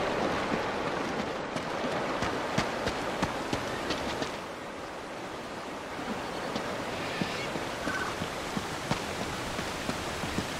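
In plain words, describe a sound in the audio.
Footsteps thud on stone at a steady pace.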